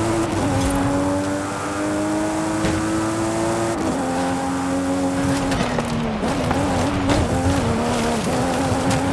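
A car engine roars steadily, dropping in pitch with each gear change.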